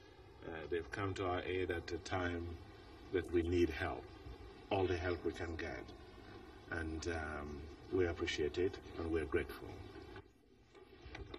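A middle-aged man speaks steadily into microphones.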